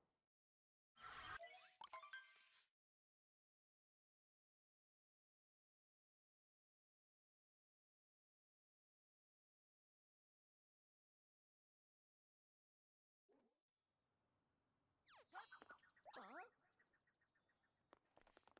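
Video game sound effects chime and whoosh.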